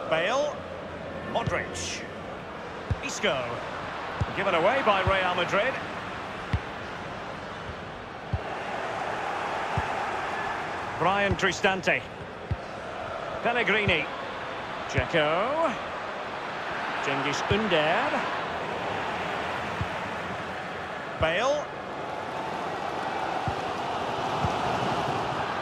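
A stadium crowd murmurs and roars steadily.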